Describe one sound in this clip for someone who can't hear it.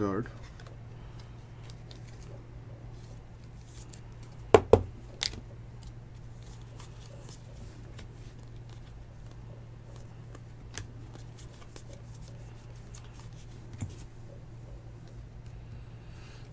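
Trading cards slide and tap against each other close by.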